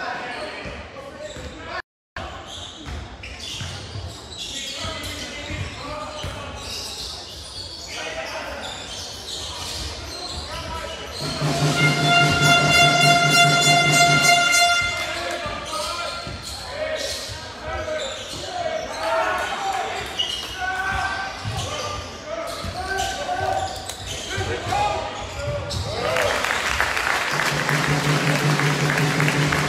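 Spectators murmur and call out in a large echoing hall.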